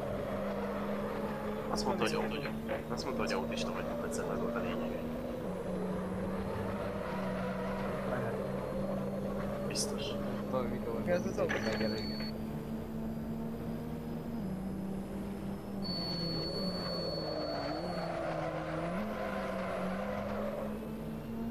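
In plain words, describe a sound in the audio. A racing car engine hums steadily, its pitch stepping up and down as gears change.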